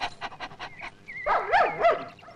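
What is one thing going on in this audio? A dog barks loudly.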